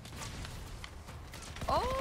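A gun fires short bursts.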